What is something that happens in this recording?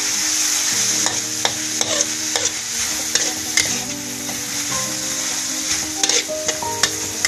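A metal spatula scrapes and clacks against a wok.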